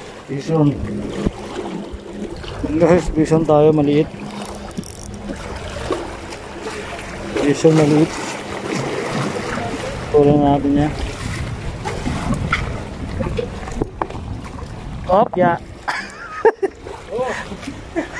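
Waves lap gently against rocks.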